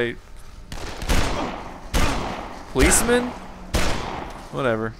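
Gunshots fire from a pistol in quick succession.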